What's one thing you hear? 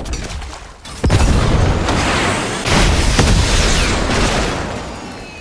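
A loud whooshing blast launches a character into the air.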